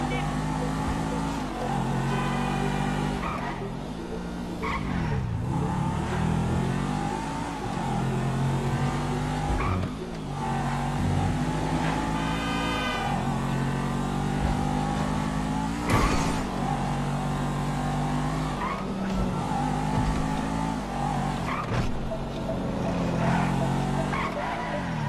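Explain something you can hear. A sports car engine revs hard and shifts up through the gears.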